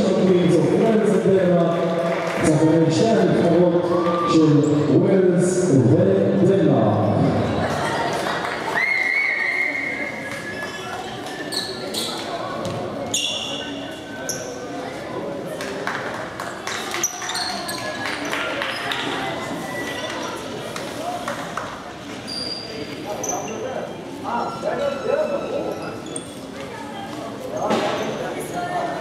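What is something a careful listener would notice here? A crowd murmurs and claps in a large echoing hall.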